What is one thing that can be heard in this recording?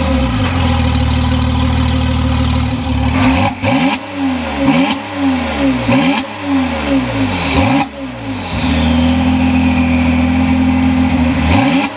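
A sports car engine idles with a deep rumble close by.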